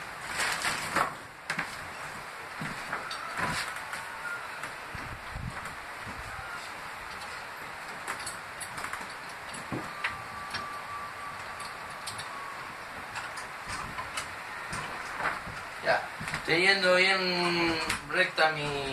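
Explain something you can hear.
Wooden boards clatter and knock as a man handles them.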